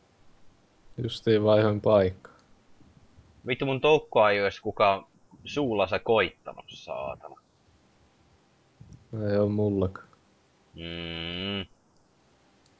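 A young man talks casually into a close microphone in short bursts.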